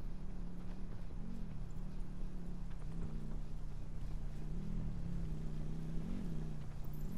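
Footsteps crunch quickly on a gravel path.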